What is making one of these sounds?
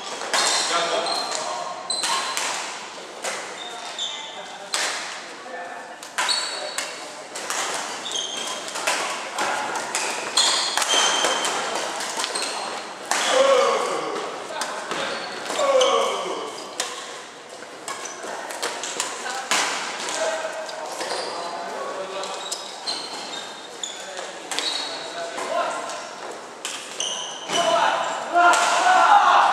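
Sports shoes squeak on a wooden court floor.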